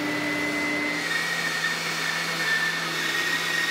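A band saw hums while cutting wood.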